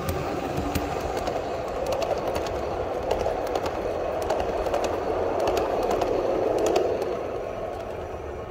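A model train rushes past with a rattling roar.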